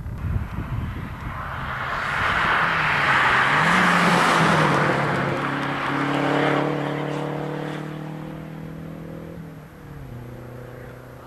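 A second rally car engine revs hard as it approaches, roars past and fades away.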